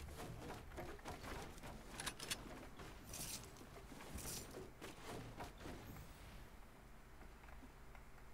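Wooden walls clatter as they are quickly built.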